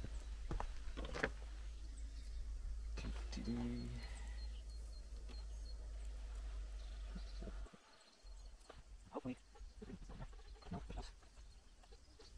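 Metal parts clink under a car's hood.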